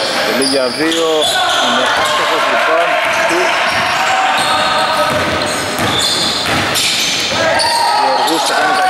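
Men shout and call out to each other in an echoing gym.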